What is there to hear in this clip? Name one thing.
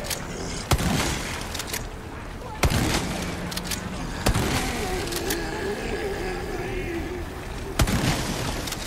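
A pistol fires single loud shots.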